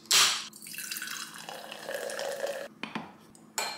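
Liquid pours and splashes into a glass.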